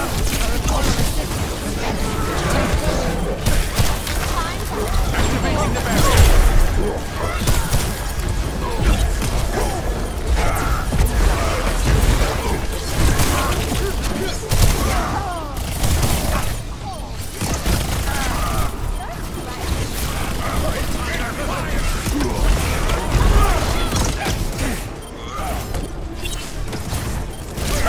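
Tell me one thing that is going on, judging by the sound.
Energy weapons fire in rapid crackling bursts.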